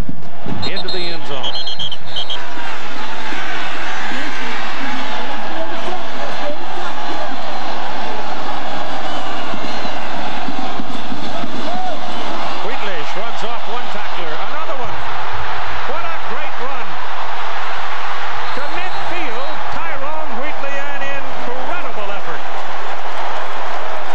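A large stadium crowd roars and cheers outdoors.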